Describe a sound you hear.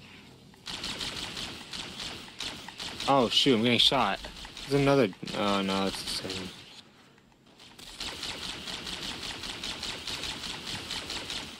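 A rapid-fire weapon shoots in quick bursts.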